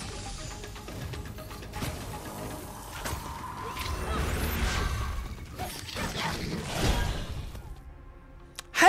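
Magic blasts and clashes of a fight burst and rumble.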